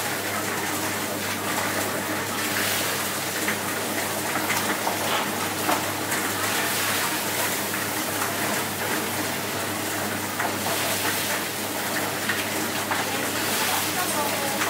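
Water splashes and drips as chickens are dipped and lifted from a pot.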